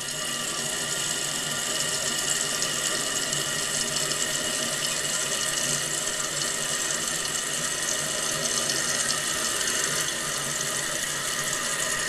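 Water hisses steadily through a toilet tank's fill valve as the tank refills.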